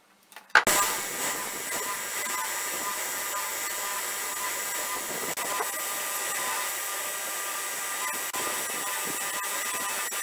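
Wood rasps against a sanding belt.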